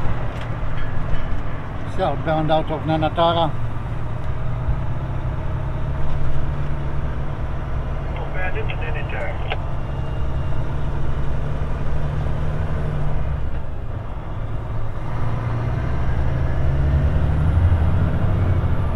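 A car engine hums steadily as the car drives along a road.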